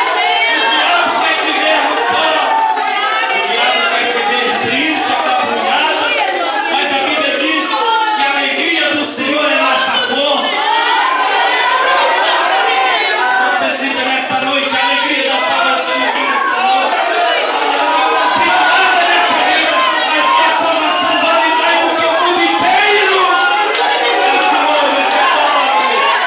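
A middle-aged man preaches with animation through a microphone and loudspeakers in an echoing hall.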